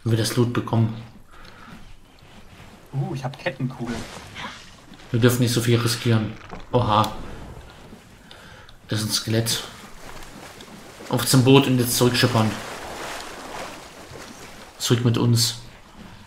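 Gentle waves lap on a sandy shore.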